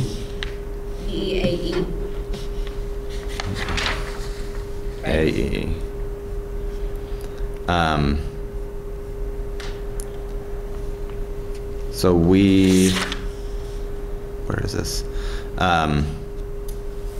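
A man speaks calmly through a microphone, in short bursts, in a slightly echoing room.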